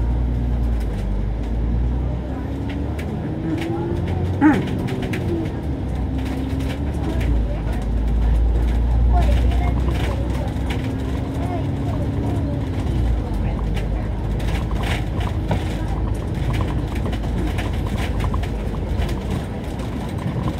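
A bus engine rumbles steadily while driving along a city street.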